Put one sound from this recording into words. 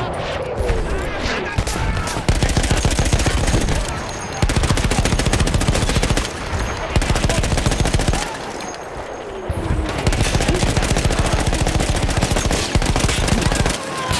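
A heavy machine gun fires long, rapid bursts close by.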